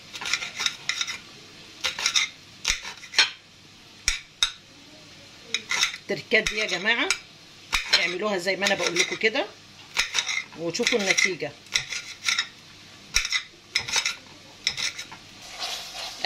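A knife taps and clicks against a glass plate while chopping.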